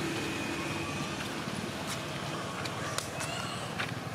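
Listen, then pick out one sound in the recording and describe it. A motorbike engine hums as it passes on a road.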